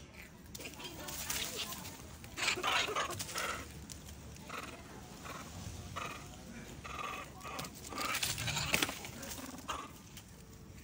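Dry leaves rustle and crunch as monkeys scamper over the ground.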